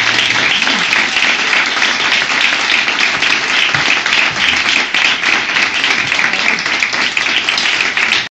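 An audience claps loudly and steadily.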